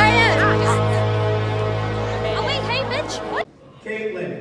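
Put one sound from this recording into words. Young women chatter and laugh close by.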